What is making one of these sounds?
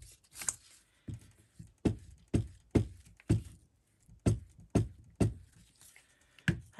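A glue stick rubs and taps against paper.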